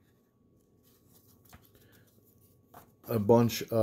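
Paper tickets rustle softly as a hand handles them.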